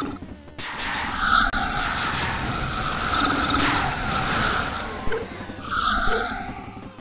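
Game explosions burst with crackling blasts.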